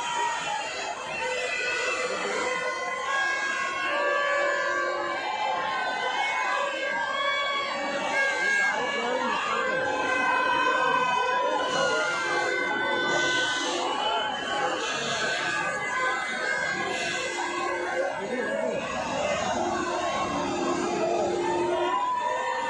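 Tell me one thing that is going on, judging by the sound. A large crowd shouts and chatters outdoors.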